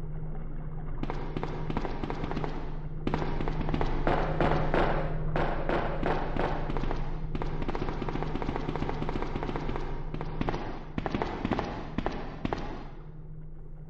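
Footsteps clang quickly on a metal walkway.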